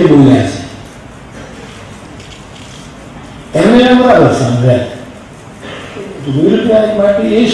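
An elderly man speaks slowly and with feeling into a microphone, heard through loudspeakers in a large hall.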